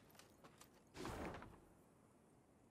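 A paper scroll unrolls with a soft rustle.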